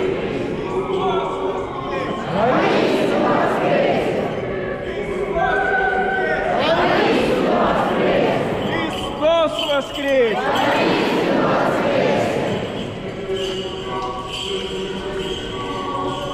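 A crowd sings and chants together in a large echoing hall.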